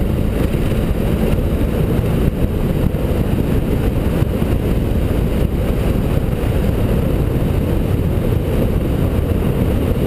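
A motorcycle rides along at a steady speed.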